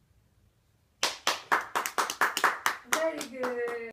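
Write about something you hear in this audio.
A small child claps hands quickly and repeatedly.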